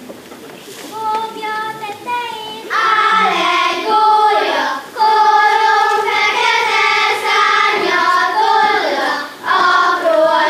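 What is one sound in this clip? A group of young girls sings together in a large hall.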